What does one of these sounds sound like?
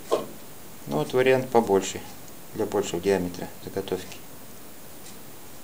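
Small metal parts click softly as they are fitted together.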